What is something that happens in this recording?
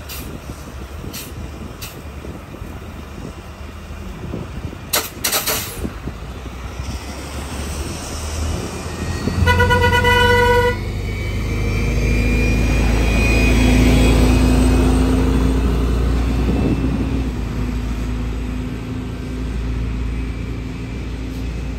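A bus engine rumbles and roars as the bus drives past and pulls away.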